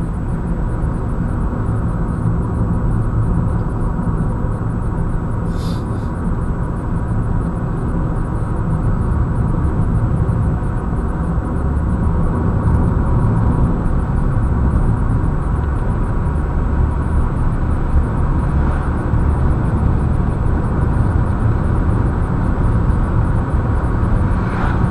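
A car's engine hums and its tyres roar steadily on a highway, heard from inside the car.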